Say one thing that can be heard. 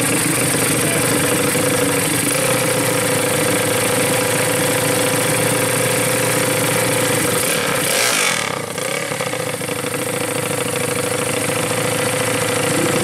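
A motorcycle engine idles loudly and revs in sharp bursts.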